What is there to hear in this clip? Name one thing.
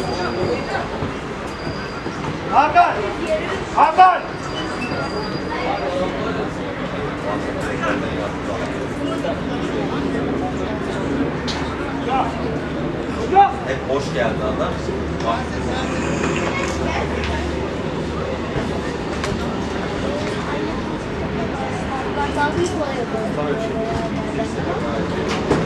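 Players shout to each other across an outdoor football pitch.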